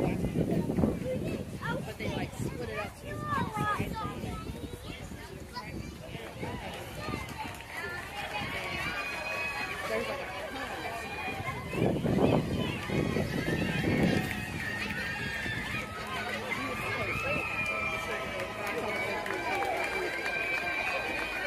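Young players call out across an open outdoor field.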